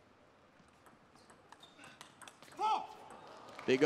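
A table tennis ball clicks back and forth across a table.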